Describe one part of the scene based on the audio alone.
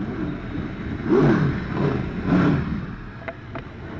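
A racing car engine roars loudly as the car speeds past close by.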